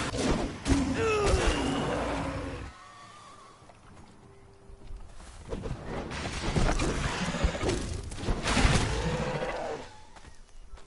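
A creature roars and growls loudly.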